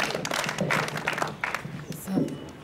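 A group of girls clap their hands.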